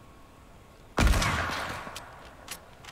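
A gunshot bangs loudly and echoes away.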